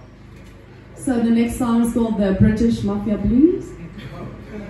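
A young woman sings into a microphone, amplified in a room.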